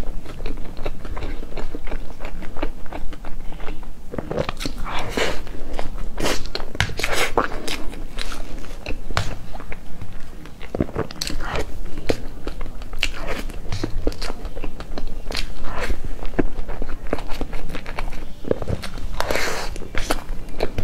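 A fork scrapes and taps against a plate.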